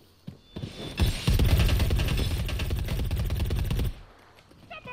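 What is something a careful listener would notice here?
Rapid automatic gunfire rattles in a long burst.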